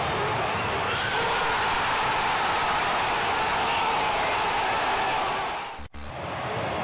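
A stadium crowd roars and cheers wildly.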